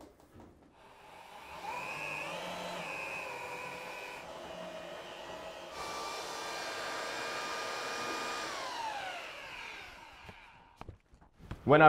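A power mixer whirs steadily as it stirs thick mortar.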